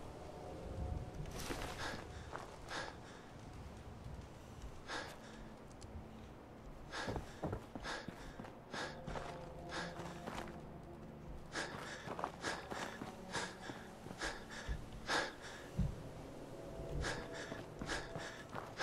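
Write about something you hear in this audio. Footsteps crunch over grass and rubble at a steady walking pace.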